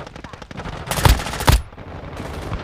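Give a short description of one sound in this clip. Gunshots crack in short bursts.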